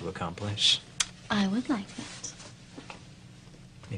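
A young woman speaks with animation, close by.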